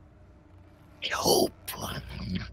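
A man shouts loudly over an online call.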